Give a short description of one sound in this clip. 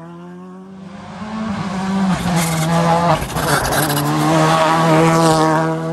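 A rally car roars past close by, shifting through its gears.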